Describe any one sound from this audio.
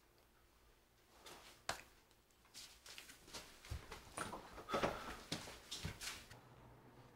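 Footsteps shuffle on a wooden floor.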